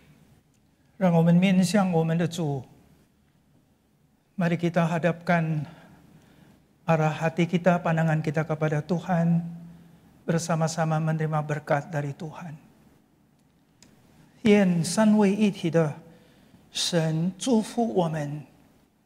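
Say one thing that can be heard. An elderly man speaks slowly and earnestly through a microphone, with pauses.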